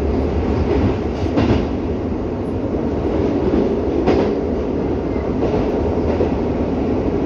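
A subway train rumbles and rattles steadily along the track.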